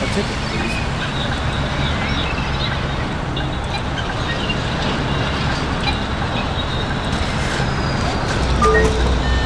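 Ticket machine buttons click a few times.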